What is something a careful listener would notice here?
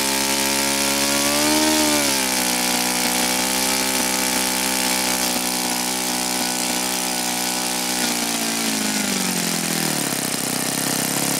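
A model engine's pitch rises briefly, then drops and winds down as it slows.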